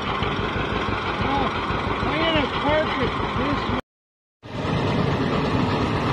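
A tractor engine idles with a steady, rapid chugging.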